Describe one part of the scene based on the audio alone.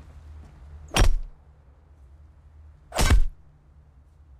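A pickaxe strikes a wooden crate with sharp thuds.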